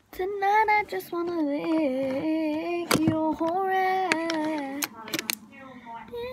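A girl sings close to the microphone.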